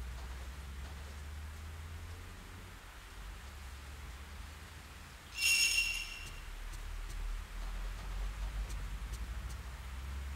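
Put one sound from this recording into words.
Footsteps tap on a wooden floor indoors.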